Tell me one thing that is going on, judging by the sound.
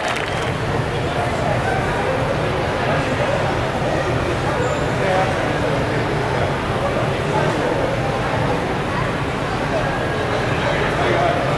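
Electric fans hum steadily.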